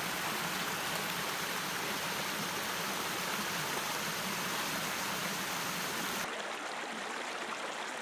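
A shallow stream babbles and rushes over rocks.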